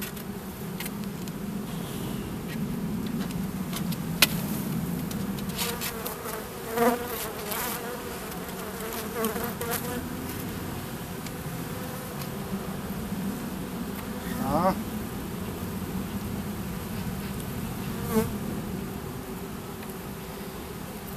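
Honeybees buzz steadily in a low hum close by.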